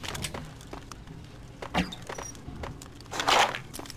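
A metal cabinet door creaks open.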